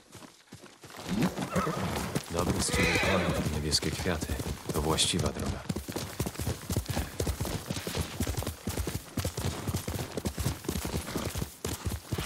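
A horse gallops with quick, heavy hoofbeats.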